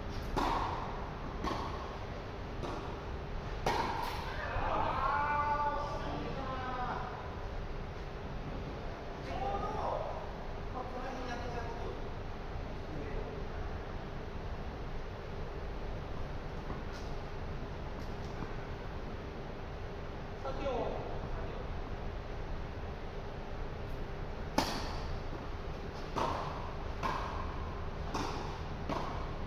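Tennis rackets strike a ball with sharp pops in a large echoing hall.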